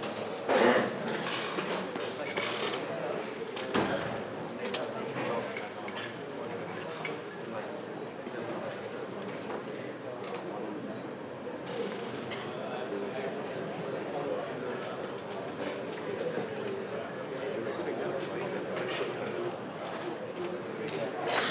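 An audience murmurs softly.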